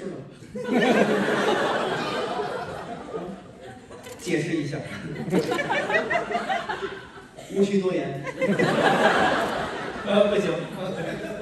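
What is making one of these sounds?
A second man answers through a microphone.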